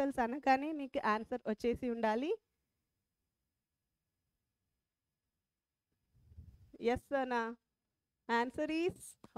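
A woman speaks with animation into a close microphone.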